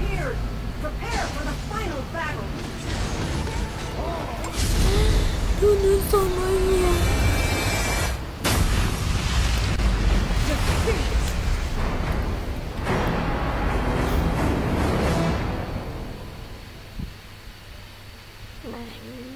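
A young woman talks casually into a microphone.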